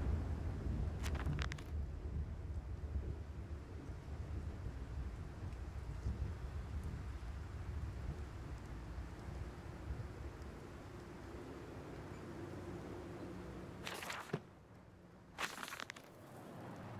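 Paper rustles as a page turns.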